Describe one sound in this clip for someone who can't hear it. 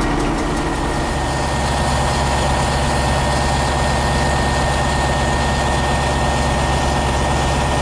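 A diesel locomotive rumbles past, hauling a container train.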